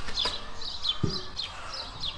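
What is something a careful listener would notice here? A wooden barrel thuds down onto paving stones.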